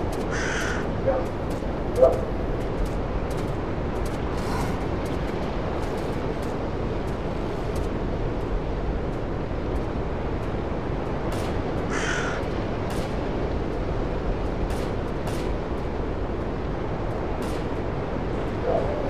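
Wind blows steadily through the trees outdoors.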